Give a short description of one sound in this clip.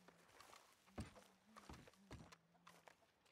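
Footsteps thud on the ground as a man walks up.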